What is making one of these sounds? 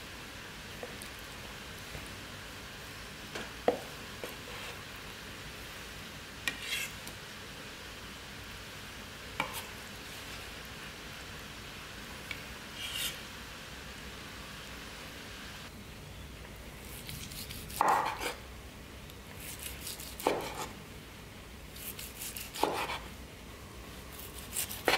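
A knife slices through meat on a wooden board.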